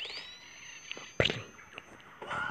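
A slingshot snaps and launches a cartoon bird with a whoosh.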